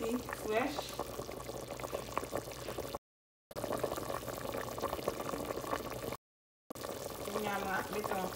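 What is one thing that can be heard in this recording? A pot of broth bubbles and simmers steadily.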